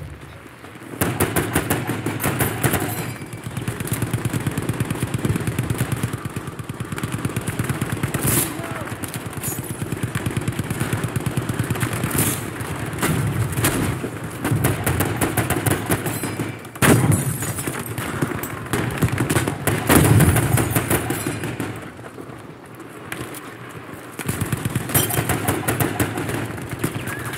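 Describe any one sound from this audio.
Rapid gunfire rattles in long bursts.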